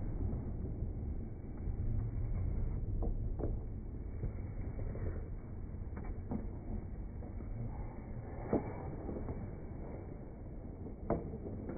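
Skates scrape and glide on ice in a large echoing rink.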